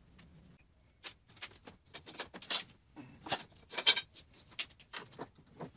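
Metal rods clatter and rattle against each other.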